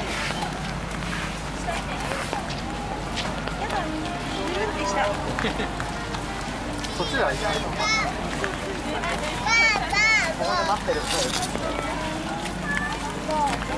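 Rain patters steadily on umbrellas.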